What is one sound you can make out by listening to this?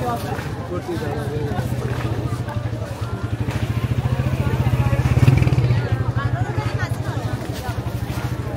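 A motorcycle engine putters closely past.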